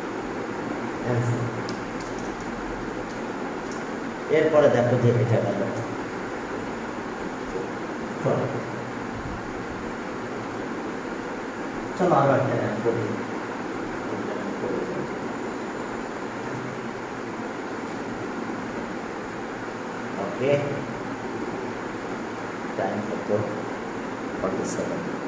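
A man speaks in short bursts into a headset microphone, explaining calmly.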